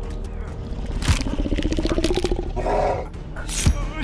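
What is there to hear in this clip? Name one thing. A young man screams in pain up close.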